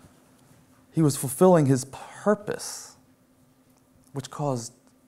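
A middle-aged man speaks calmly and with emphasis through a microphone in a large room.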